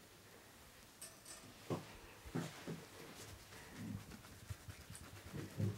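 Fingers rustle and scrunch through hair close by.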